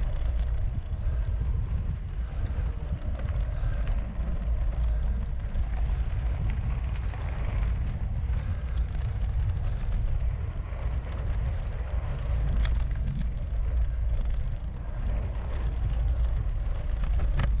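Wind buffets a microphone steadily, outdoors.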